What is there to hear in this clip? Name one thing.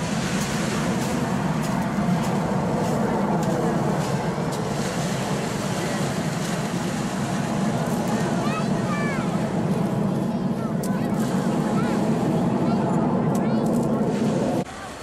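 Jet engines roar steadily overhead.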